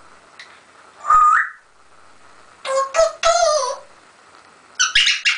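A parrot whistles and chatters in short bursts, close by in a small echoing room.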